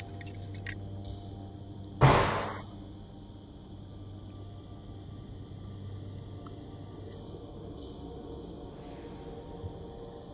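A spaceship's engines roar steadily.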